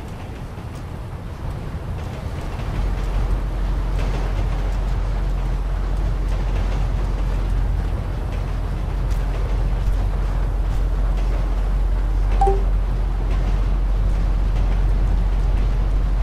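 A freight train rumbles along the tracks with a deep, steady roar that grows louder.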